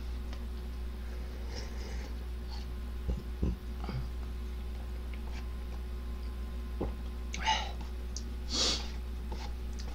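A young man slurps noodles close to a microphone.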